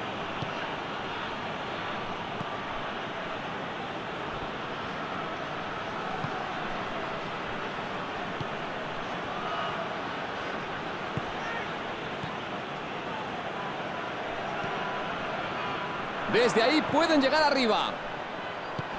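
A stadium crowd murmurs and roars.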